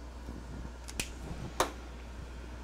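A marker cap clicks off.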